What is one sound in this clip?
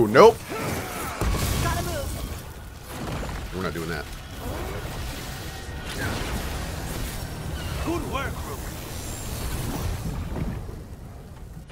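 Game combat booms and crackles with fiery blasts.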